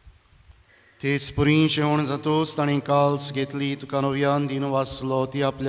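A man chants loudly through a microphone.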